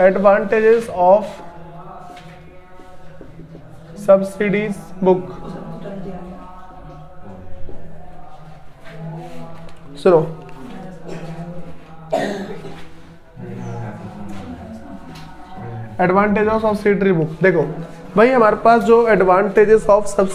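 A young man speaks calmly into a clip-on microphone, close by.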